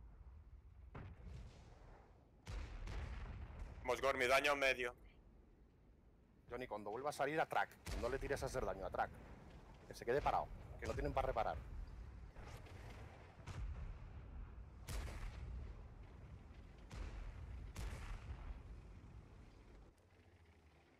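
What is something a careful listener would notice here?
Tank cannons fire with deep booms.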